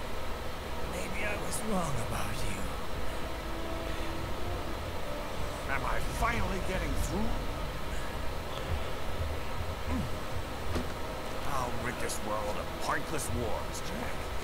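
A middle-aged man speaks menacingly, close by.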